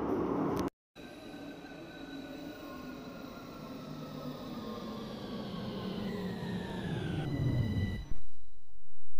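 An electric train rolls in and brakes with a falling whine.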